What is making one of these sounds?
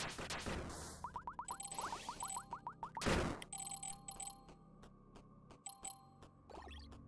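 Quick electronic chimes ring out in rapid runs.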